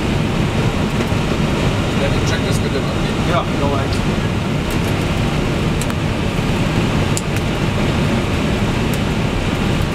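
Switches click on a control panel.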